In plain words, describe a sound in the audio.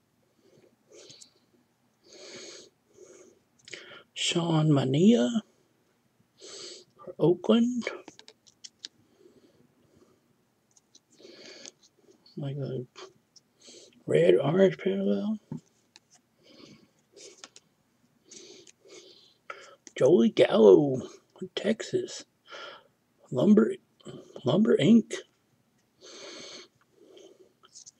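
Glossy trading cards slide and rub against each other in the hands.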